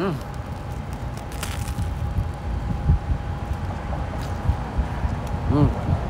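A man bites into and chews a crusty sandwich.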